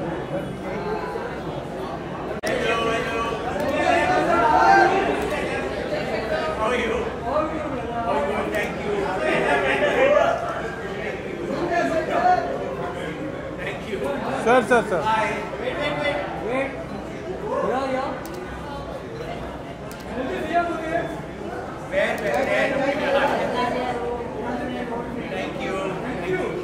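Several men and women talk and call out over one another nearby.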